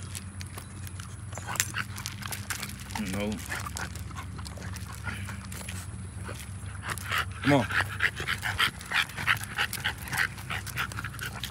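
Paws crunch and shuffle on gravel.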